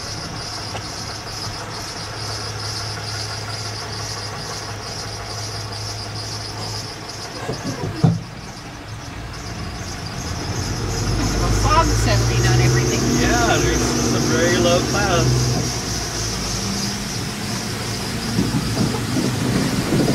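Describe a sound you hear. A vehicle engine drones steadily from inside the cab.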